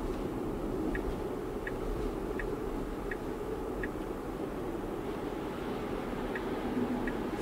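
A car's turn signal ticks at an even pace.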